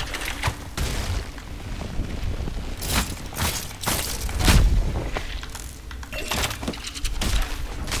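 Creatures burst apart with a crunch.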